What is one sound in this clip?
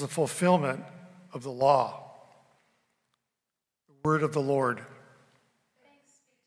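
A young man speaks calmly through a microphone in a large echoing hall.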